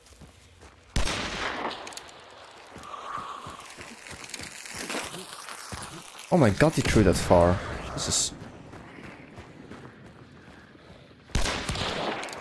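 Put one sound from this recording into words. A rifle shot bangs loudly and echoes.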